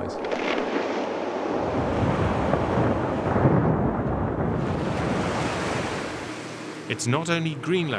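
Ice breaks off a glacier and crashes down with a deep, roaring rumble.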